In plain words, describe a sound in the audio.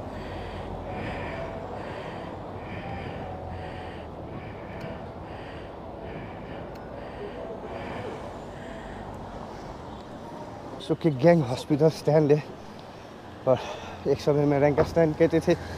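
Traffic hums along a street outdoors.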